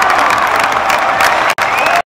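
Spectators clap their hands nearby.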